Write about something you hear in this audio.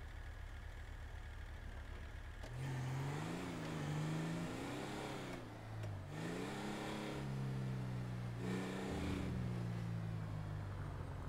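A car engine idles and then revs up and down as the car drives.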